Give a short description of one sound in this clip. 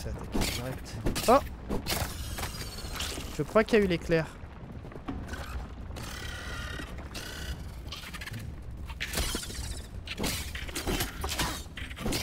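A blade slashes and thuds into a creature.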